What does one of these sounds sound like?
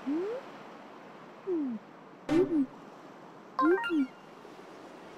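Short electronic blips rise and fall in pitch.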